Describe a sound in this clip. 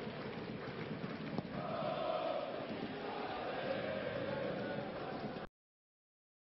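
A stadium crowd roars and chants in a large open space.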